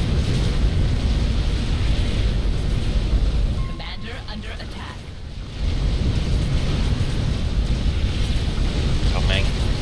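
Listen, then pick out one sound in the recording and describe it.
Explosions rumble and boom in a battle.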